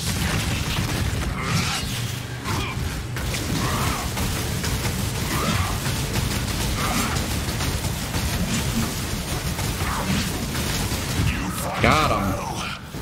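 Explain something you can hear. Magic spells crackle and boom in a battle.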